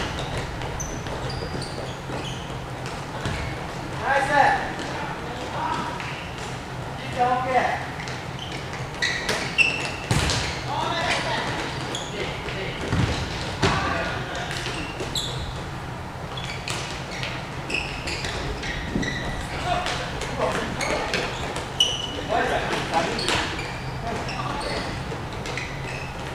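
A ball thumps as it is kicked.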